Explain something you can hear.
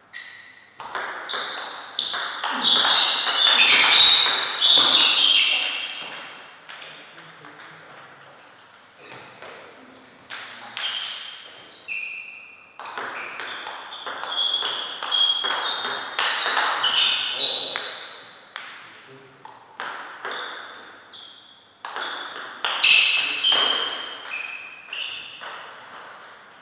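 A table tennis ball cracks off rubber paddles in a rally.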